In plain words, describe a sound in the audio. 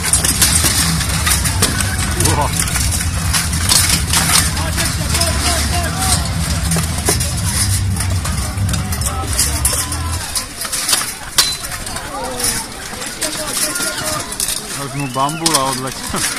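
Steel weapons clang against armour and shields in a melee.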